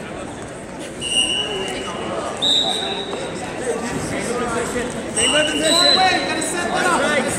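A referee's whistle blows in short blasts.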